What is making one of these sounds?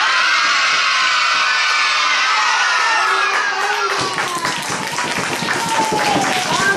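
A crowd of young children sings together loudly.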